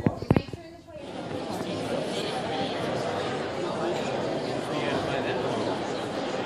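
Many people chatter in a large room.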